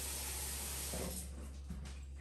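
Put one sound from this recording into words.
Water runs from a tap and splashes.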